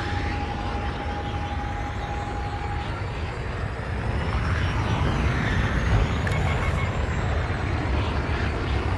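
A spaceship engine roars steadily as the ship speeds along.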